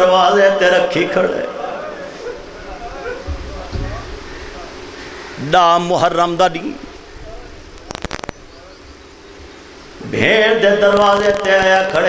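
A man chants loudly and tunefully into a microphone, heard through loudspeakers, in long drawn-out phrases with pauses between them.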